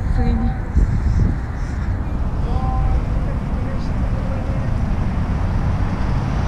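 City traffic rumbles steadily along a street outdoors.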